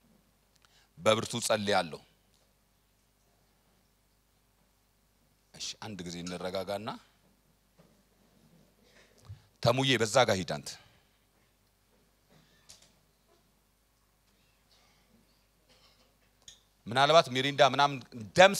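A man speaks with emphasis into a microphone in short bursts, with pauses between them.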